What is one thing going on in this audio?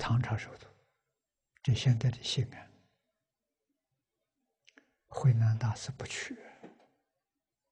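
An elderly man speaks calmly into a close microphone, with pauses between phrases.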